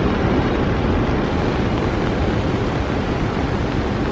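Waves crash on a beach.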